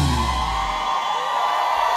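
A deep bass beat thumps through loudspeakers.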